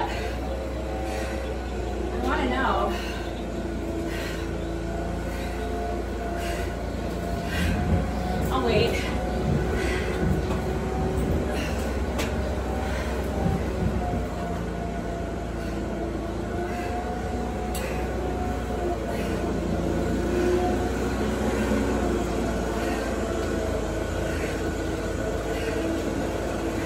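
Sneakers scuff and thud on a concrete floor.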